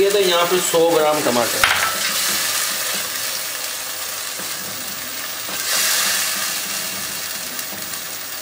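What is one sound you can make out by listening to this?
A spatula scrapes and stirs inside a pot.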